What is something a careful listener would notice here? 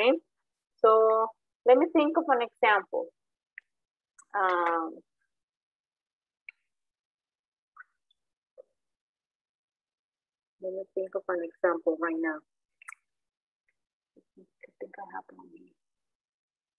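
A woman speaks clearly and slowly over an online call, pausing between phrases.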